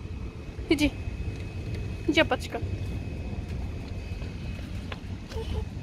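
A toddler's small footsteps patter on paving stones.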